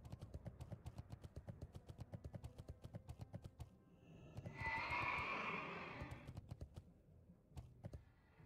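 Hooves of a running mount beat quickly and steadily.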